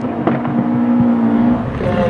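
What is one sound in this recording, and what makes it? A racing car's exhaust backfires with a sharp bang.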